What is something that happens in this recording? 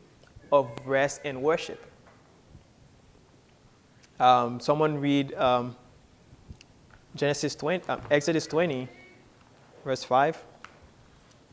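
A man speaks calmly into a microphone in short bursts with pauses.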